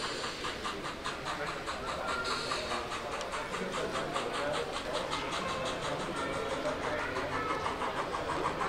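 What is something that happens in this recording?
A model train clicks rhythmically over rail joints as it rolls along.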